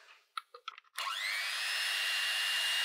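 An electric hand mixer whirs steadily, its pitch rising as it speeds up.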